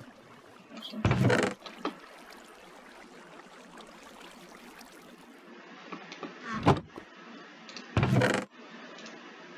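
A wooden chest creaks open.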